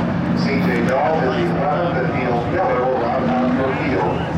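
A pack of stock cars races around a dirt track.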